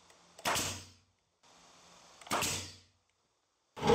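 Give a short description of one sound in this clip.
A pneumatic nail gun fires into wood.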